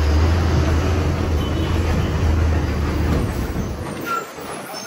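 A vehicle engine rumbles low and steady while driving along a street.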